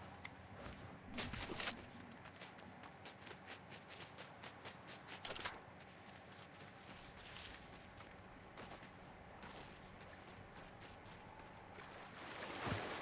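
Footsteps crunch quickly on snowy ground.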